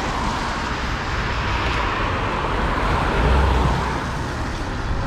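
A van drives past on a wet road.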